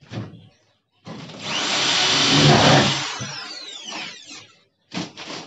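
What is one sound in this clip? A handheld power tool whirs loudly, then winds down.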